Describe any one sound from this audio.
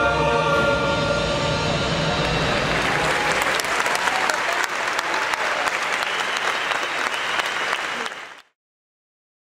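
A large crowd applauds and cheers in a big echoing space.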